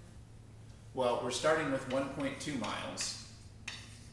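A man speaks calmly, as if lecturing.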